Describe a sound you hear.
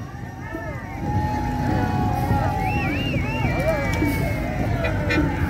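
People cheer and call out outdoors.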